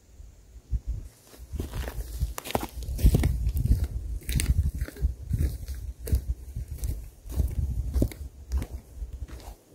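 Footsteps crunch on dry ground and twigs close by.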